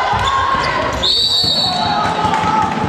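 A referee's whistle blows once in a short blast.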